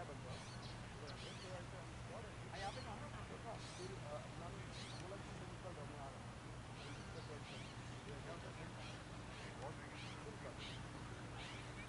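Men talk calmly at a distance outdoors.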